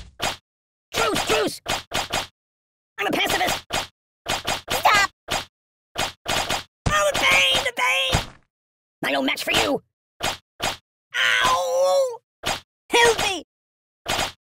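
A cartoonish voice squeals and groans in pain.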